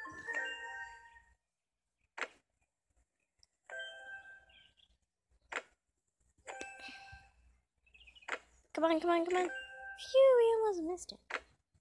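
A tablet game plays short chimes and jingles through a small speaker.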